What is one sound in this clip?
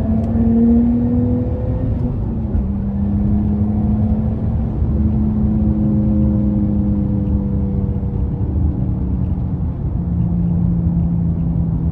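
A car engine hums steadily from inside the car, its pitch shifting as it changes gears.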